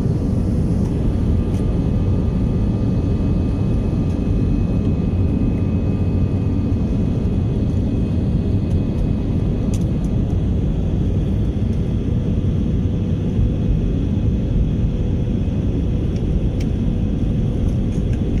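Jet engines roar steadily inside an aircraft cabin.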